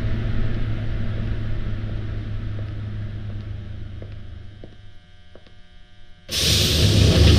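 A train rumbles steadily and fades away.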